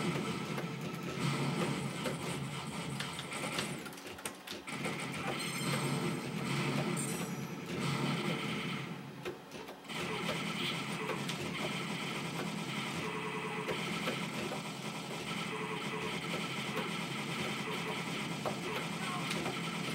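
Gunfire and explosions from an arcade game crackle and boom.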